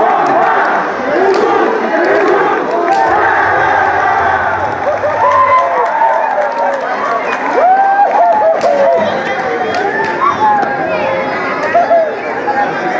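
A large crowd of men and women chatters and calls out loudly nearby, in an echoing hall.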